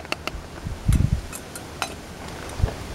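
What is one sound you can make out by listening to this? Metal clinks against a metal pot.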